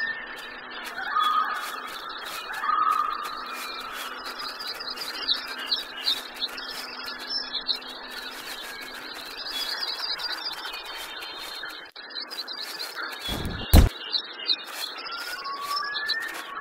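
Hooves drum on grass as a horse gallops.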